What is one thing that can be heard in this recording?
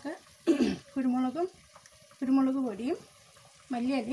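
Water pours into a pot.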